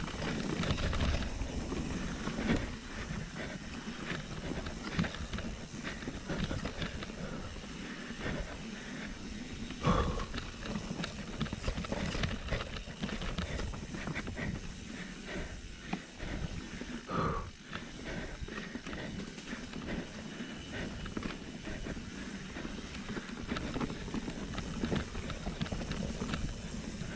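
Bike tyres roll and rattle over a bumpy dirt trail.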